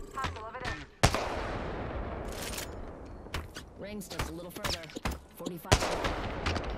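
A sniper rifle fires loud single shots that echo and fade away.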